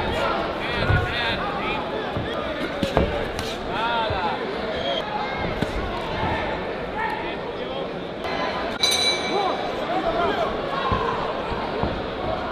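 A large crowd shouts and cheers in a big echoing hall.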